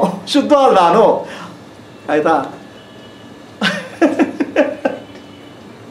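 A middle-aged man laughs heartily close to a microphone.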